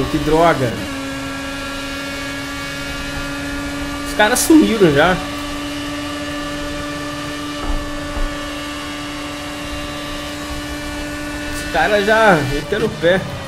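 A racing car engine whines at a high, steady pitch.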